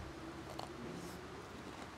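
A young man slurps and chews food.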